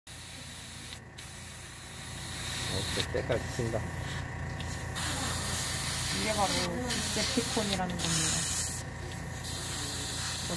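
An airbrush hisses in short bursts as it sprays paint.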